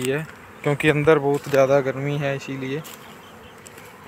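Bees buzz softly around their hives.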